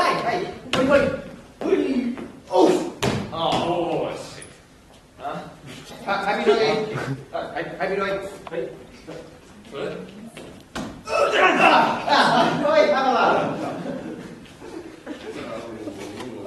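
Young men talk and shout with animation.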